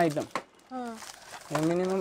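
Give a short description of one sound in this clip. Plastic packets crinkle as they are handled.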